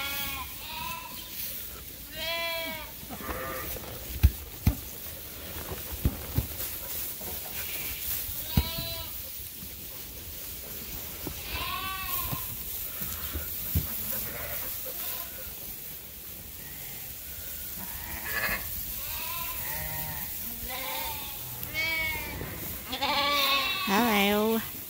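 Lambs bleat loudly and often, close by.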